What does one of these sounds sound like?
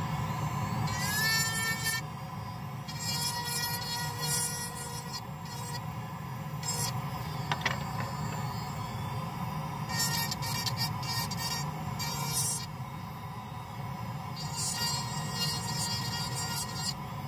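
A small rotary drill whines as it grinds, in short bursts.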